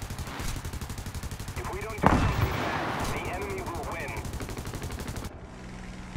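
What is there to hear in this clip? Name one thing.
Machine guns fire in rapid, steady bursts.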